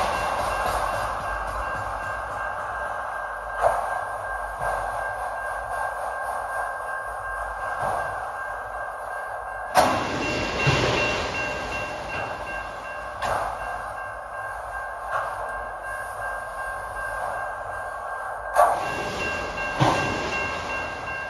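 A crossing bell rings steadily.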